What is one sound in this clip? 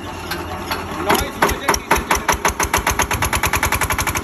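A single-cylinder diesel generator engine is hand-cranked and chugs into life.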